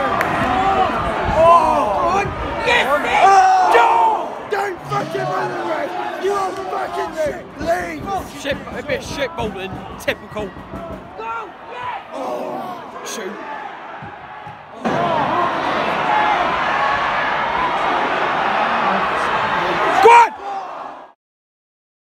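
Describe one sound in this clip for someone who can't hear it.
A large crowd of fans sings and chants loudly in an open stadium.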